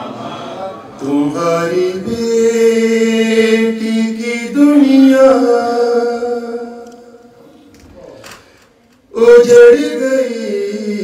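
A man chants in long, drawn-out notes into a close microphone.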